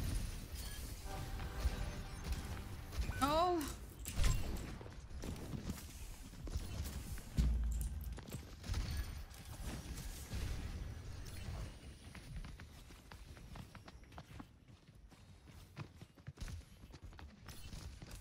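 Gunfire and energy blasts from a video game crackle and boom.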